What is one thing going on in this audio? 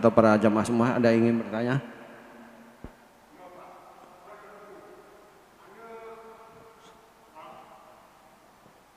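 An elderly man speaks slowly into a microphone, loud at first and then softer.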